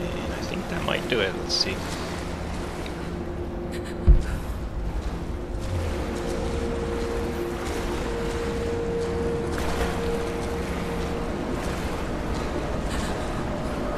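Footsteps scuff along a stone tunnel with a hollow echo.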